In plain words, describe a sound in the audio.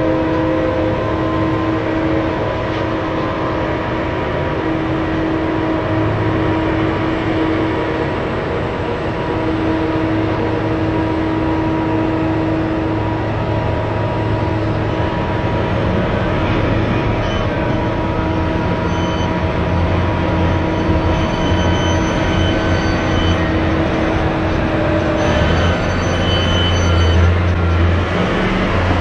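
Large tyres crunch over gravel.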